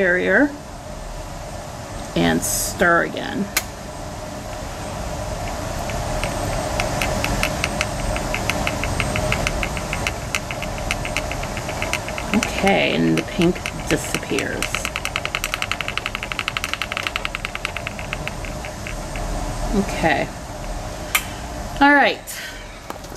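Liquid fizzes and bubbles softly in a small glass beaker.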